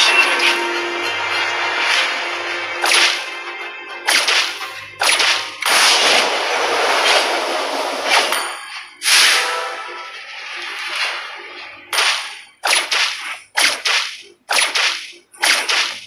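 Blades and magic blasts clash in quick, sharp bursts.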